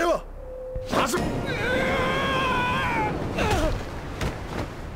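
Magic wind whooshes loudly.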